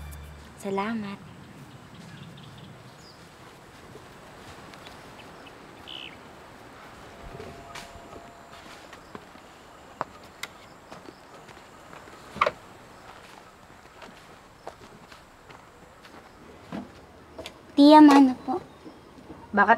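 A young woman speaks brightly and close by.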